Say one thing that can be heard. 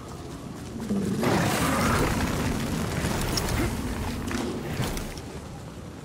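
Fire bursts with a loud roar.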